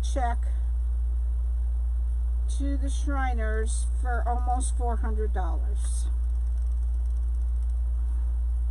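Plastic mesh ribbon rustles softly under a hand.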